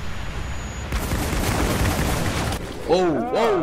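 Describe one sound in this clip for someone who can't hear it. A shotgun fires loudly in a burst of blasts.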